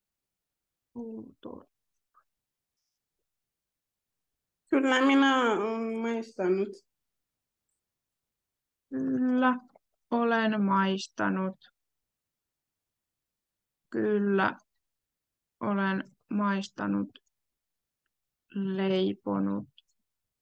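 A young woman speaks calmly and slowly over an online call, pausing between phrases.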